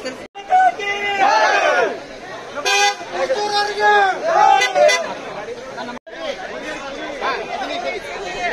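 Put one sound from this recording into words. A crowd of men chants and cheers loudly nearby.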